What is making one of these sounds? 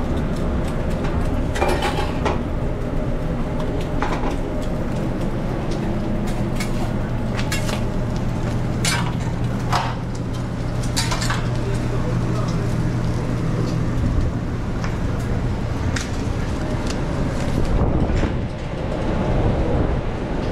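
An exhaust fan hums steadily.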